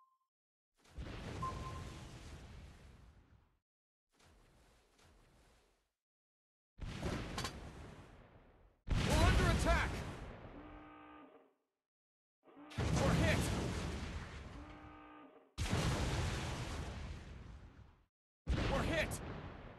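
Shells explode with loud bangs.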